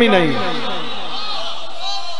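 A crowd of men chants loudly in unison.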